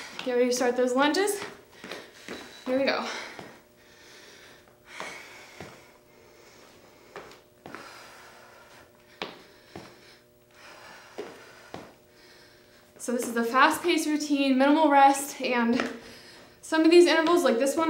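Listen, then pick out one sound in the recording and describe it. Sneakers tap lightly on a hard floor.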